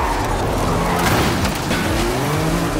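A car slams into a metal pole with a loud crash.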